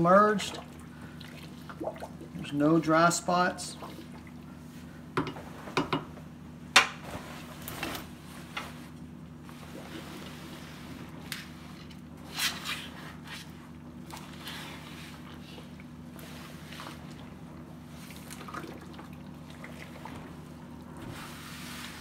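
A spatula stirs and sloshes liquid in a deep pot.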